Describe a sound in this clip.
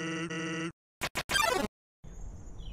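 A short, harsh electronic burst sounds as a game battle begins.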